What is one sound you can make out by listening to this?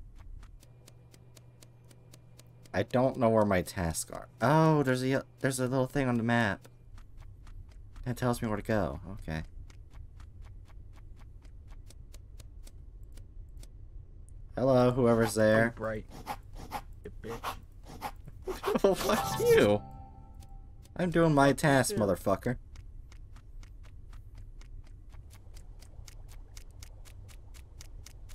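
Quick light footsteps patter steadily.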